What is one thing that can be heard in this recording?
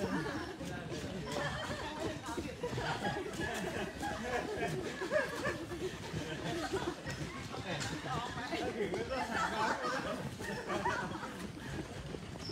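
Men and women chatter nearby.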